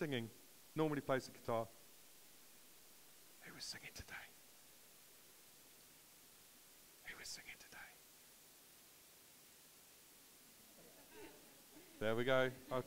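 An elderly man speaks in bursts in a large echoing hall.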